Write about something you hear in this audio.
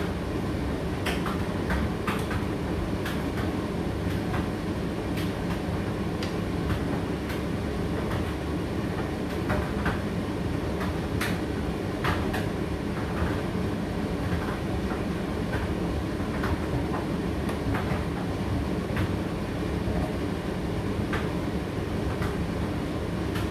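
A condenser tumble dryer runs with a steady hum and rumble.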